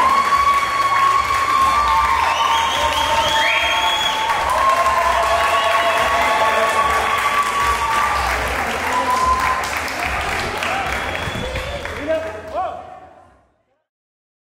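A crowd cheers and whoops loudly in an echoing hall.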